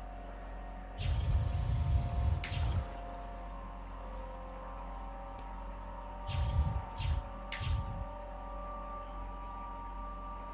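A small flying drone hums steadily as it hovers.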